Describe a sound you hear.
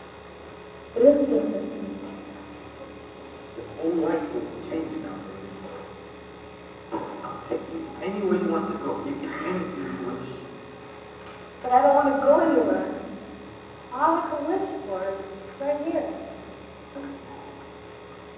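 A man speaks softly close by.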